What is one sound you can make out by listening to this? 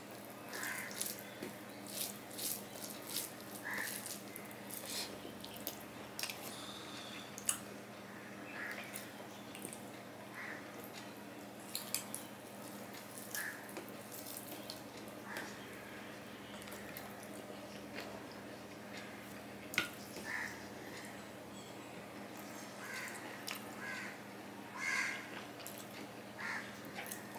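A man chews and smacks his lips loudly up close.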